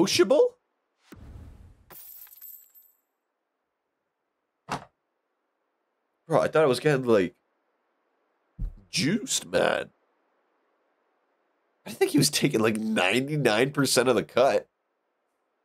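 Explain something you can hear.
A young man talks with animation into a close microphone, in bursts with pauses.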